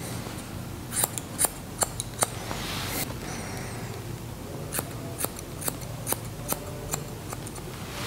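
Scissors snip through hair with sharp clicks.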